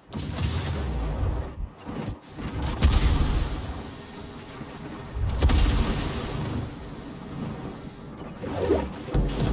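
Shells splash into the sea nearby.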